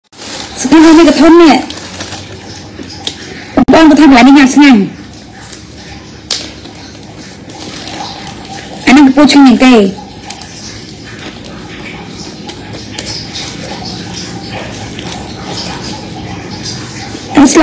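Leaves rustle and crinkle in hands.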